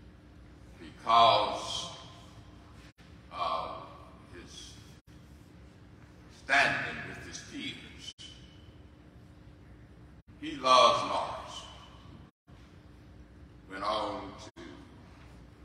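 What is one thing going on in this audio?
A man speaks slowly through a microphone and loudspeakers in a large echoing hall, with pauses between phrases.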